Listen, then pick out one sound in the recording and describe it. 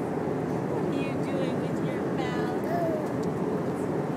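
A baby babbles and coos briefly close by.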